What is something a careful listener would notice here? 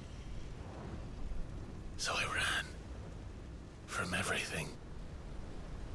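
Flames roar and crackle with a deep, steady rumble.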